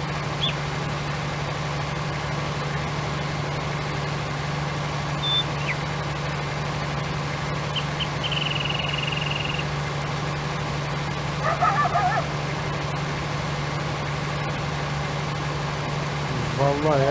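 A heavy harvester engine drones steadily.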